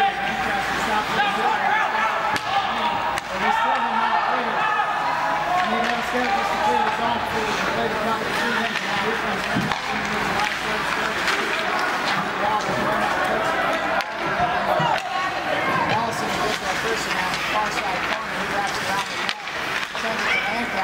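Skate blades scrape across ice.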